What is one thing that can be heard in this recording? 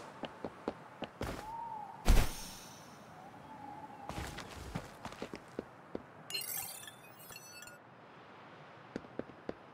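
Footsteps tap quickly on a hard surface.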